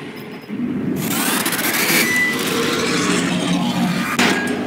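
An explosion bursts with a loud roar and crackling.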